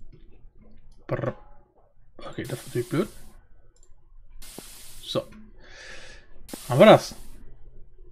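A man speaks briefly into a close microphone in short bursts.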